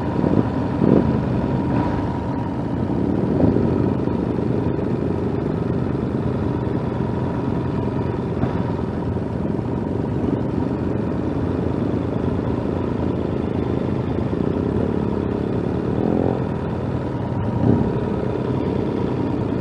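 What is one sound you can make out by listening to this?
A motorcycle engine rumbles steadily close by as it rides slowly.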